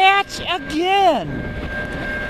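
A train horn blows loud blasts.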